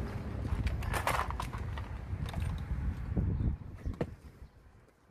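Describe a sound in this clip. Metal tools clatter and rattle in a plastic toolbox.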